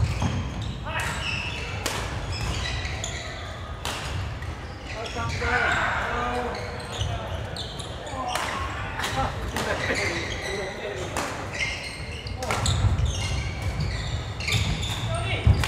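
Sports shoes squeak on a hard floor.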